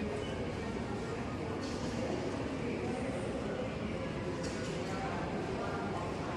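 A distant crowd murmurs in a large echoing hall.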